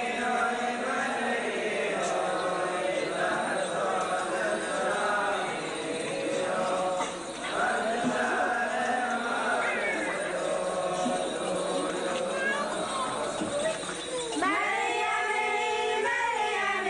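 A crowd of men and women talk and murmur close by in an echoing hall.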